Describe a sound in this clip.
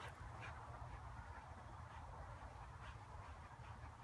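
A dog chews on a rope toy.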